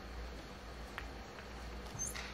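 Snooker balls click as they collide.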